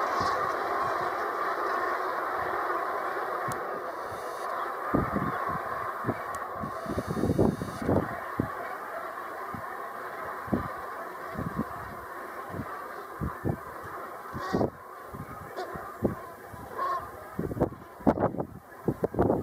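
A huge flock of geese honks and calls overhead.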